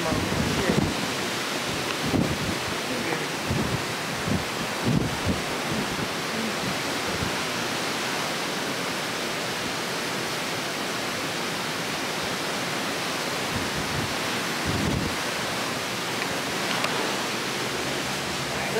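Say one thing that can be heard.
Wind blows hard across the microphone in gusts.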